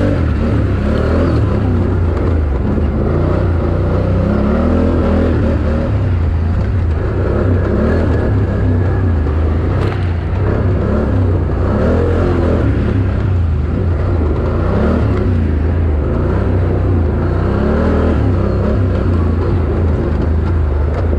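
A dirt bike engine roars and revs up and down close by.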